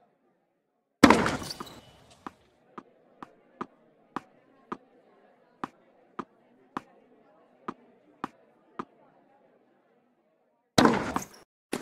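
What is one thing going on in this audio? A racket strikes a tennis ball sharply.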